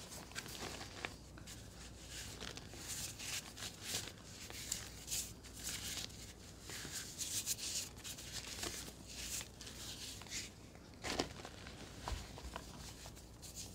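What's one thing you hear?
Soft chalk scrapes and rubs against a wet surface.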